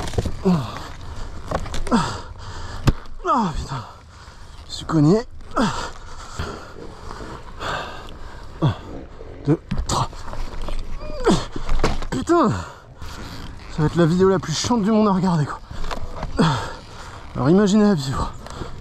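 A man talks close to the microphone, breathing hard between phrases.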